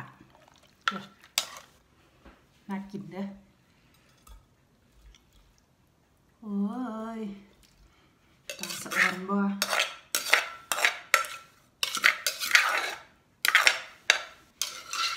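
A spoon scrapes and knocks against a clay mortar.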